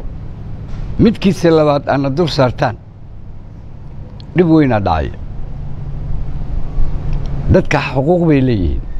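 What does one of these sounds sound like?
An elderly man speaks forcefully into a microphone, with pauses between phrases.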